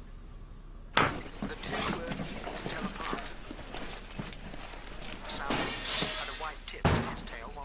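Clothing rustles and objects thump.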